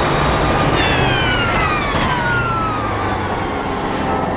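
A racing car engine roars and drops in pitch as the car slows for a corner.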